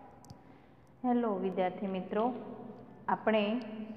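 A woman speaks clearly and steadily, close to the microphone.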